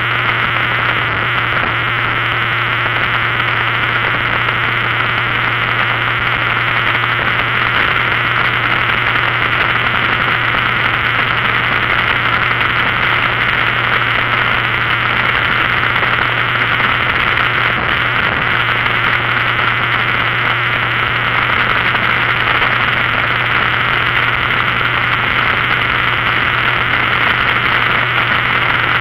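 Wind roars steadily past at speed.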